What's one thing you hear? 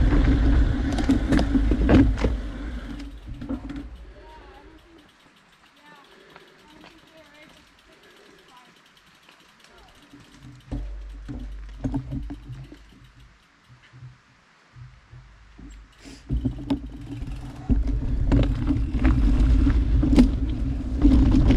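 A bicycle frame rattles and clatters over rocks.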